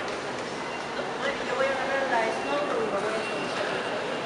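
A lift hums and rattles as it moves.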